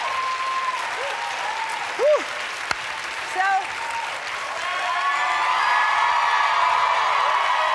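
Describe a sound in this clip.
A crowd claps and applauds steadily.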